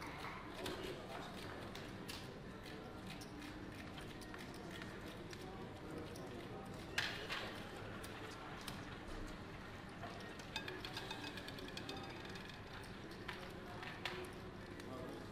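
Gaming chips click and clatter together.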